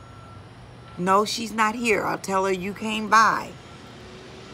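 A middle-aged woman speaks with animation close to the microphone.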